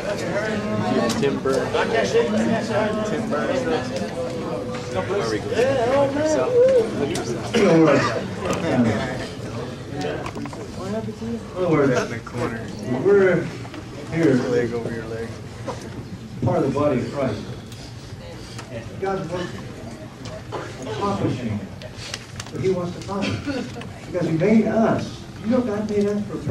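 An older man speaks calmly through a microphone in a room with echo.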